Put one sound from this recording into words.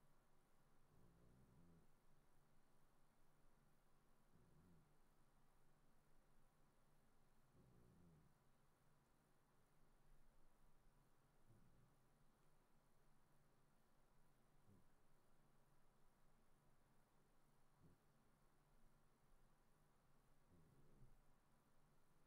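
A man speaks quietly and briefly into a headset microphone.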